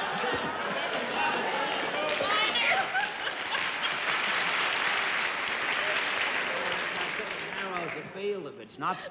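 A studio audience laughs loudly and at length.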